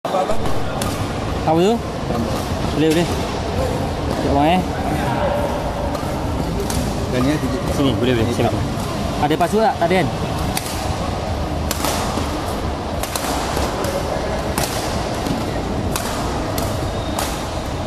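Badminton rackets smack a shuttlecock back and forth in a large echoing hall.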